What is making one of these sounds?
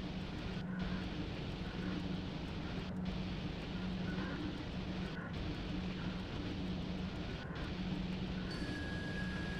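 Train wheels rumble on the rails.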